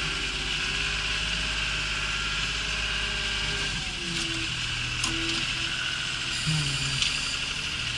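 A tractor engine rumbles steadily from inside the cab.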